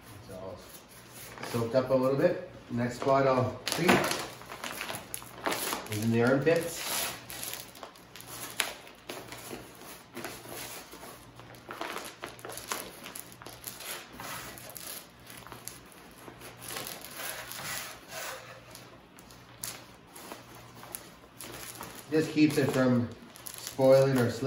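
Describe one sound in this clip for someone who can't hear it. Hands rub and scrape a wet hide.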